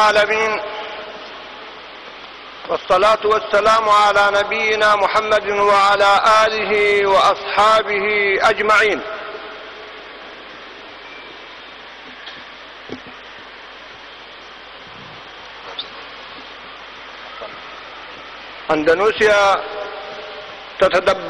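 An elderly man speaks slowly and gravely through a microphone, with echo as in a large hall.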